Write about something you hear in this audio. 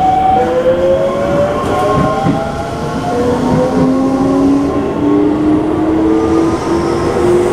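A train rumbles and rattles along the tracks.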